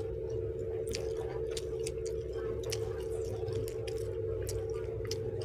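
Crisp vegetable skin snaps and crackles close by as it is peeled by hand.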